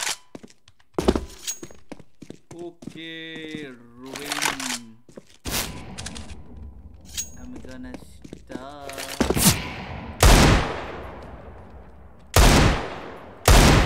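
Loud gunshots ring out from a game, one at a time.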